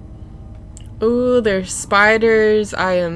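A young woman speaks with animation into a close microphone.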